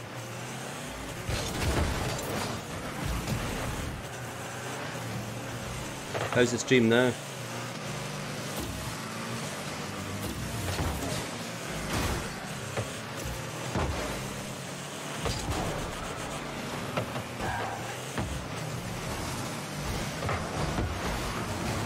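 A ball thuds as cars hit it.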